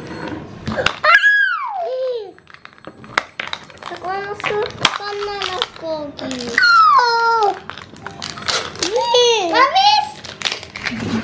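A young child speaks and squeals in a high voice, close by.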